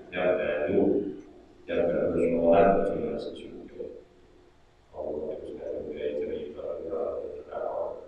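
A middle-aged man chants in a melodic voice through a microphone, with pauses between phrases.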